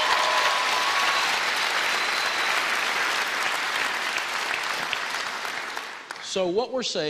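An audience claps and cheers in a large hall.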